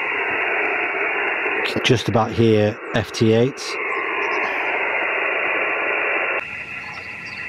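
A radio receiver hisses with loud static.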